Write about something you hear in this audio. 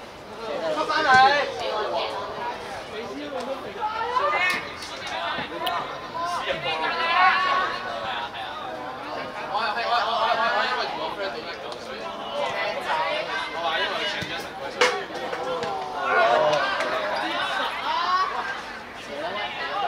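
A football thuds as players kick it outdoors.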